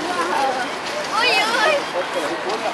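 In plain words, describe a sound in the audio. A young girl speaks up brightly close by.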